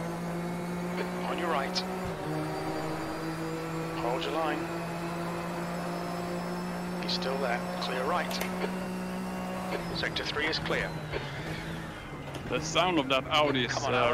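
A man speaks casually into a microphone.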